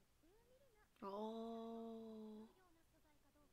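A young woman hums thoughtfully close to a microphone.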